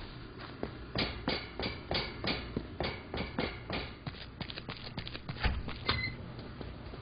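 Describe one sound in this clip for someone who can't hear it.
Footsteps thud quickly across a hard floor.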